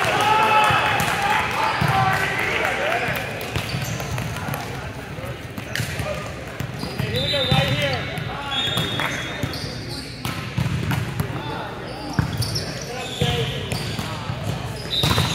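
Players call out and chatter in a large echoing gym.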